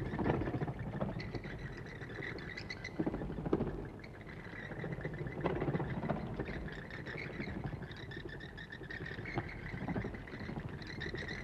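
Church bells ring overhead in a steady, repeating peal.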